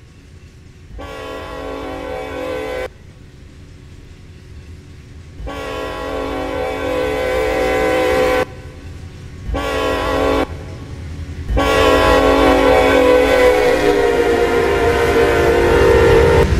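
A diesel train horn blows in long, repeated blasts.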